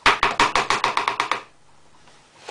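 A spoon scrapes rapidly against a plastic bowl.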